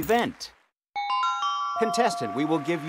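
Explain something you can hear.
Electronic chimes ring as puzzle tiles light up.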